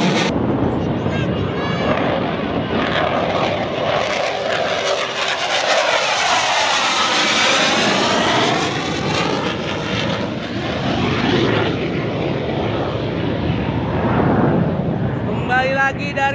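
A jet engine roars loudly as a fighter plane flies low overhead, its pitch sweeping as it passes.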